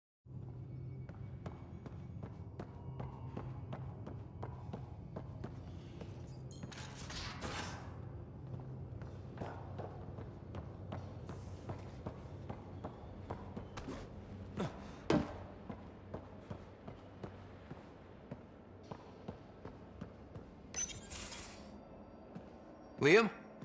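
Footsteps tap steadily on a metal floor.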